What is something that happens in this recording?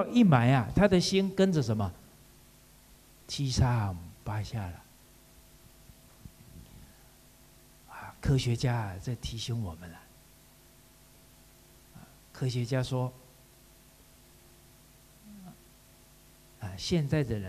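A middle-aged man speaks animatedly into a microphone, in short bursts with pauses.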